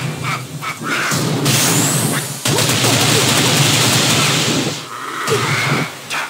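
Heavy punches and kicks land with loud thuds and impact bursts.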